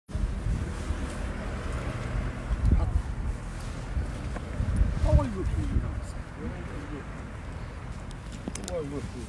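Men talk with each other nearby outdoors.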